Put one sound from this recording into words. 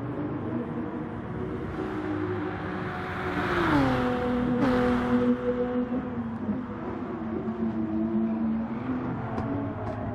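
A racing car engine roars and shifts gears as the car speeds along the track.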